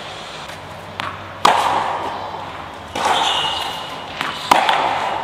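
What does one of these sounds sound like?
A tennis ball bounces on the court.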